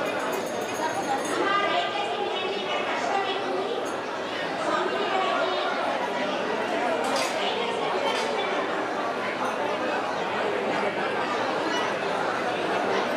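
A crowd of men and women chatters loudly all around, in a large hall.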